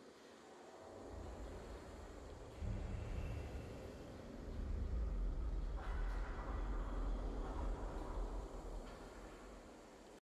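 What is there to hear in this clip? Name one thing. A triumphant game fanfare plays with deep, booming swells.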